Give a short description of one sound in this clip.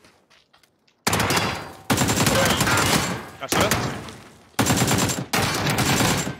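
A rifle fires in loud rapid bursts.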